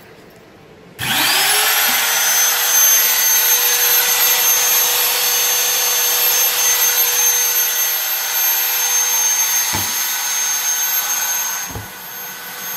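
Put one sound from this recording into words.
A router motor spins up to a loud, steady high whine, then winds down.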